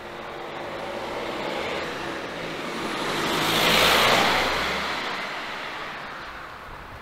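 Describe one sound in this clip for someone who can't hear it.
A car drives slowly along the street.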